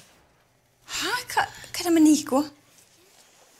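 A young woman asks a question calmly, close by.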